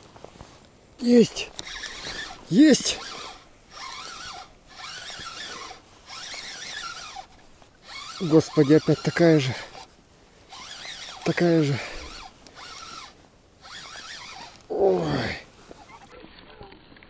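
A fishing reel whirs as line is wound in.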